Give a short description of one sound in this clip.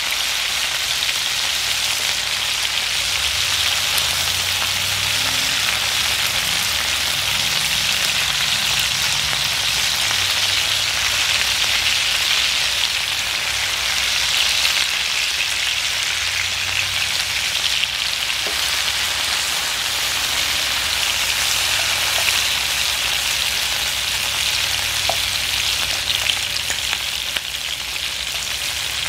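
Vegetables sizzle steadily in hot oil in a frying pan.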